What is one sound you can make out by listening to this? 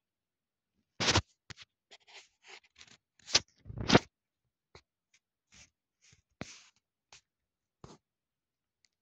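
Fingers rub and knock against a phone close up, with loud muffled bumps.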